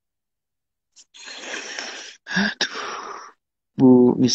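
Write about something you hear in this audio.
A young man laughs breathily close to a phone microphone.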